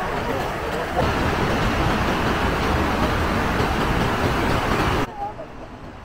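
Water rushes steadily in a mountain stream.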